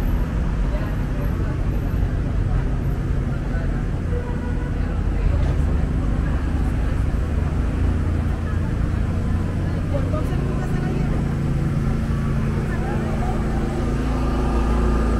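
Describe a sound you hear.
Outdoor street noise rumbles steadily.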